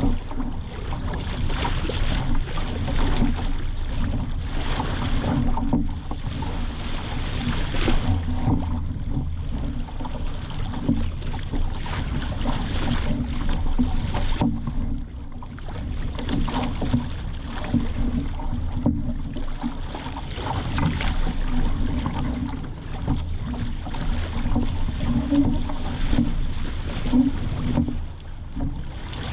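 Water splashes and rushes against a boat's hull.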